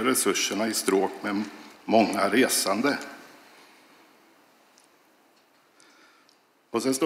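A middle-aged man speaks calmly into a microphone in a reverberant hall.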